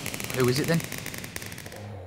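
Fire crackles.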